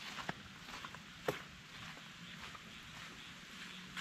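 Footsteps crunch on sand close by.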